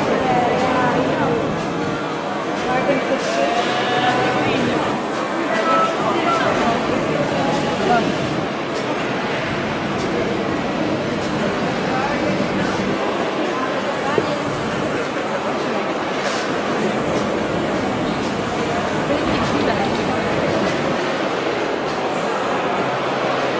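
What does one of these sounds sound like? Many people chatter nearby in a busy indoor space.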